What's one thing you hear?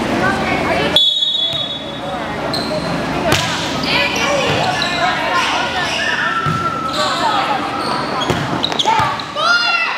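A volleyball is struck with a sharp smack.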